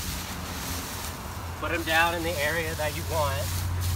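Dry leaves rustle and crunch as they are gathered by hand.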